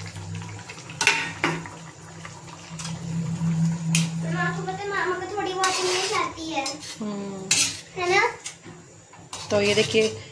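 A metal spatula scrapes and knocks against a pan.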